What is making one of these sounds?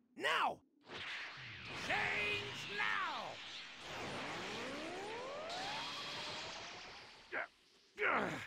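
A burst of energy roars and whooshes loudly, then fades.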